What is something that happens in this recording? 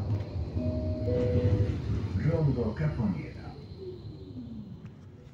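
A tram's electric motor whines, falling in pitch as the tram slows.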